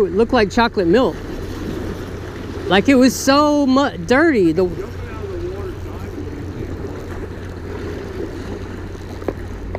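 Small waves splash against rocks.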